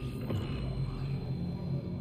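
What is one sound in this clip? A game menu plays a short chime as a purchase completes.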